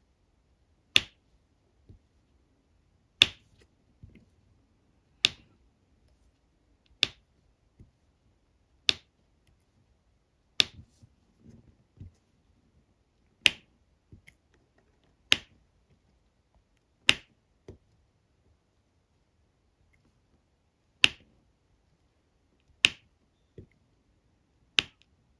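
Small plastic beads click sharply onto a board, one at a time.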